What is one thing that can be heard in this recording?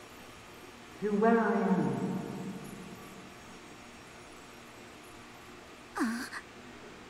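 A man exclaims loudly into a microphone.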